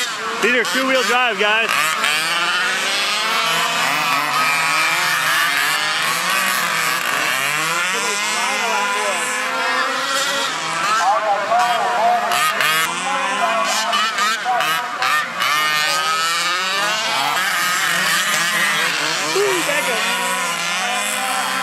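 Small electric racing cars whine and buzz as they speed around a dirt track.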